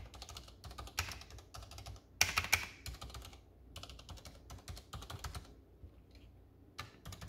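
Fingers type rapidly on a mechanical keyboard, with keys clicking and clacking.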